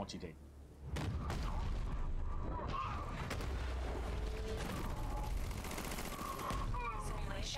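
Punches and kicks thud in a fast fight.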